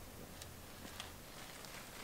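A goat bleats.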